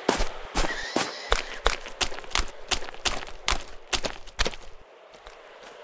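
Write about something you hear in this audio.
Footsteps crunch quickly over dirt and dry leaves.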